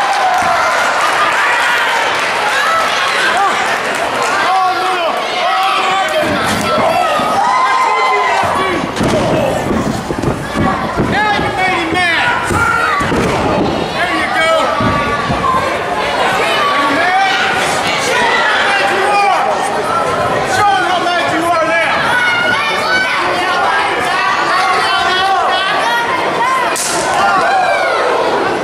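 A crowd of spectators shouts and cheers throughout, echoing in a large hall.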